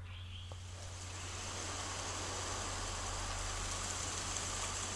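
Bike tyres roll over a dirt trail.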